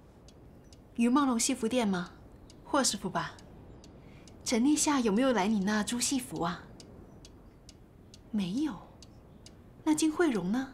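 A woman speaks calmly into a telephone, close by.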